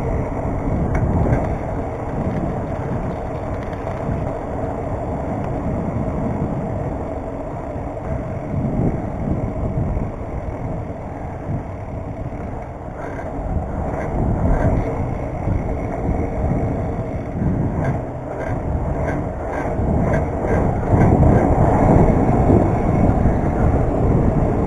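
Bicycle tyres roll and hum on pavement.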